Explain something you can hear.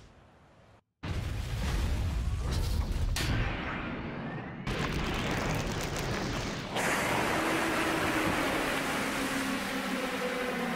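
A huge metal machine rumbles deeply.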